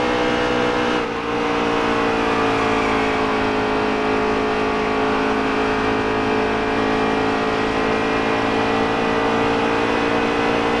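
A race truck engine briefly drops in pitch, then slowly climbs again.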